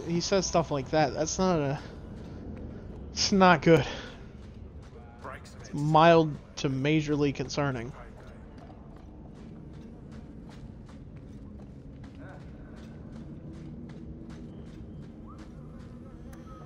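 Footsteps crunch on gritty ground.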